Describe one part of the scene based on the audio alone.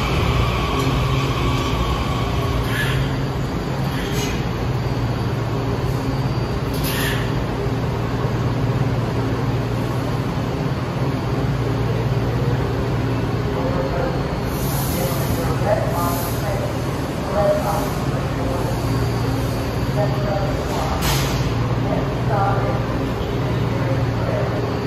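A subway train hums steadily and loudly in an echoing station.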